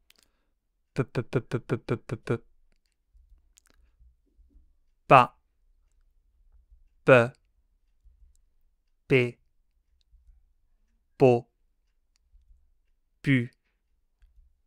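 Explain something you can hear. A man says short syllables one at a time into a close microphone, with pauses between them.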